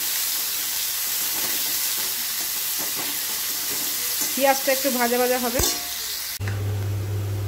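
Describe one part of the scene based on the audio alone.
Onions sizzle and hiss as they fry in a pan.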